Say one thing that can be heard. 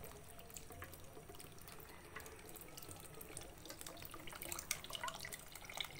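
Liquid pours into a pot.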